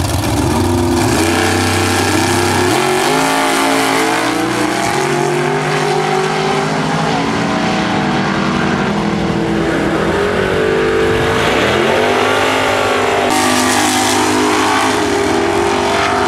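Race car engines roar at full throttle, rising in pitch again and again as they shift gears.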